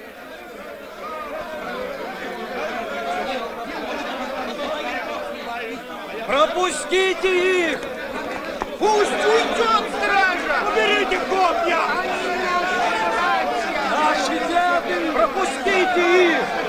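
A crowd of men shouts and clamours outdoors.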